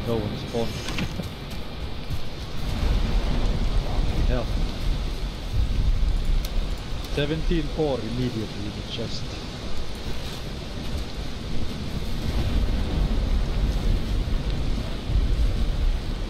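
Rain falls steadily with a low rumble of wind.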